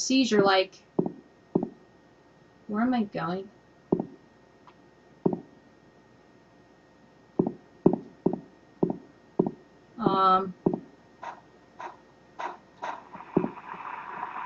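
Footsteps tap on hard paving at a steady walking pace.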